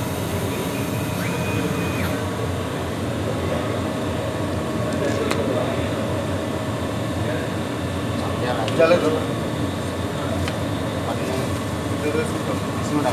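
A machine's fan hums steadily nearby.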